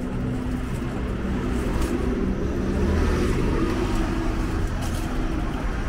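A shopping cart's wheels rattle over pavement.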